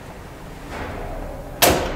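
A hand bangs on a metal lift door.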